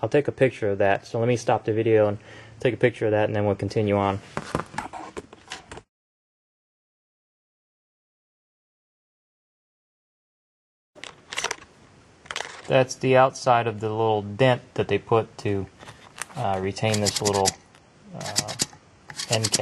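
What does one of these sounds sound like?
Metal parts click and scrape as a gun tube is handled.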